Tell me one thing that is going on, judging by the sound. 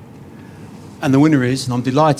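A middle-aged man speaks loudly through a microphone.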